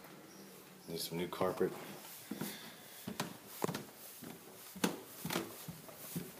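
Footsteps climb carpeted stairs.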